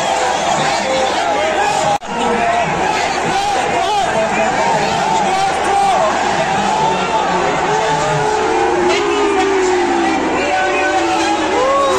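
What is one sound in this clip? A large stadium crowd roars and chants loudly outdoors.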